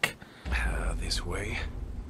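Fists thud in a scuffle.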